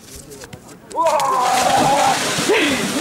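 Water splashes loudly as a man runs into a lake.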